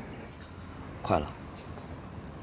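A young man answers briefly nearby.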